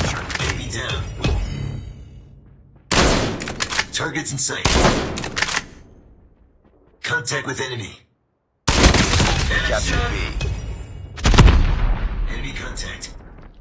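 A sniper rifle fires loud, booming shots one after another.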